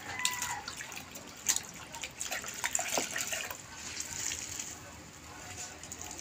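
Water splashes and drips as a wet sponge is wrung out into a bucket.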